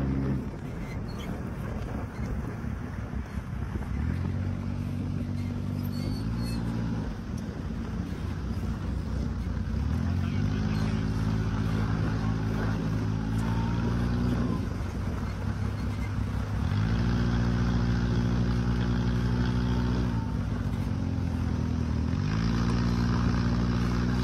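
A buggy engine roars and revs up and down close by.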